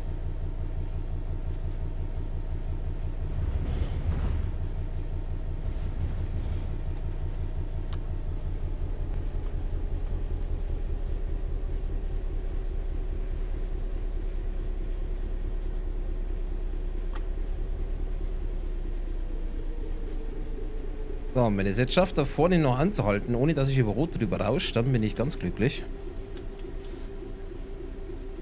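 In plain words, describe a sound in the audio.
A diesel train engine hums steadily and its pitch slowly drops as the train slows.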